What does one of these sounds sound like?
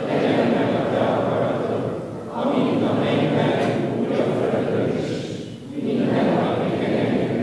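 A large crowd of young people sings together in a large echoing hall.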